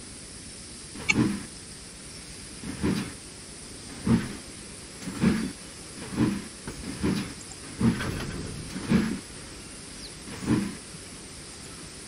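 A steam locomotive chuffs in slow, regular puffs.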